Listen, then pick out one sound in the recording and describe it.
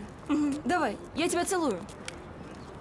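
A young woman speaks into a phone, close by.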